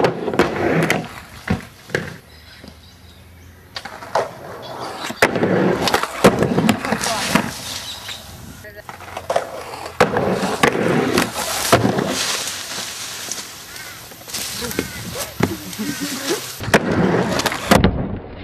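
Skateboard wheels roll and rumble over wooden boards.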